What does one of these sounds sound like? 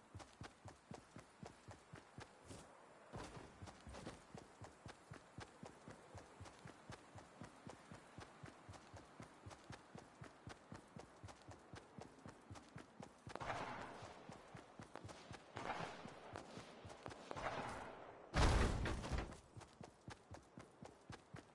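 Footsteps patter quickly and steadily on grass and pavement.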